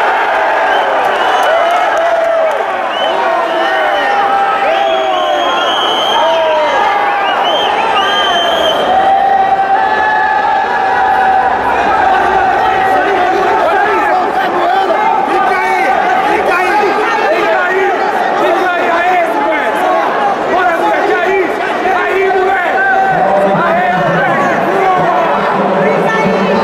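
A crowd of spectators shouts and cheers loudly in a large echoing hall.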